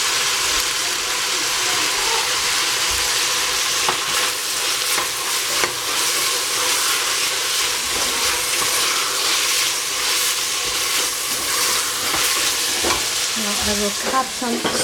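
Vegetables sizzle steadily in a hot pot.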